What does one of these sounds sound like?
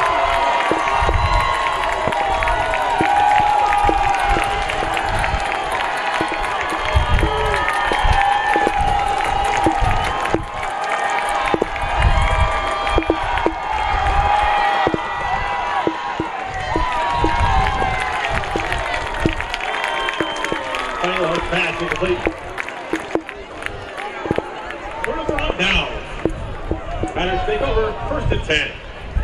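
A large crowd cheers and murmurs in an open stadium.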